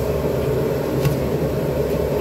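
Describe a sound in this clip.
A plastic strainer taps against a pot rim.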